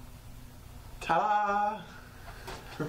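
A young man sings loudly with a held, wavering note.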